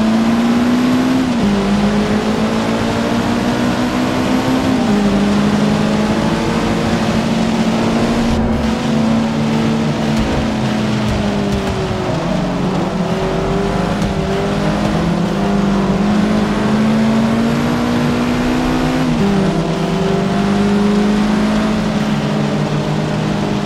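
Rain patters on a car's windshield.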